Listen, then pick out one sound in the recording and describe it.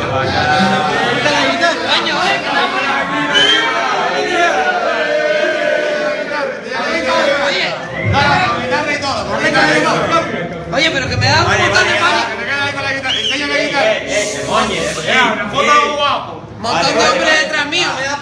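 A crowd of men sings and shouts loudly together close by.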